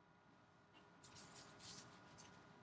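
Gloved hands rustle against plastic wrapping and cards.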